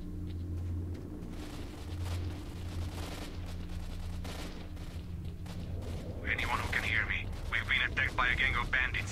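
Footsteps tread steadily on asphalt.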